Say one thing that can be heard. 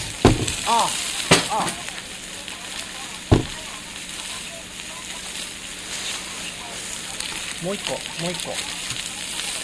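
A man speaks casually nearby.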